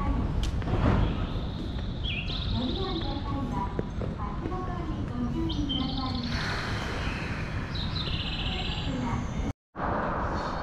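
A parked train hums steadily beside the platform.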